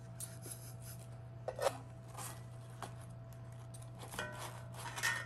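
A fork scrapes and clinks against a cast iron pan.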